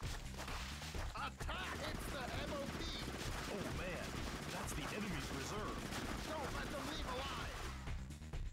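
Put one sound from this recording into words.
A man shouts in alarm through a game's sound.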